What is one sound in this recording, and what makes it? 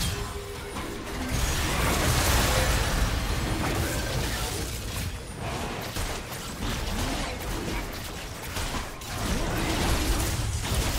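Spell effects whoosh and crackle in a game fight.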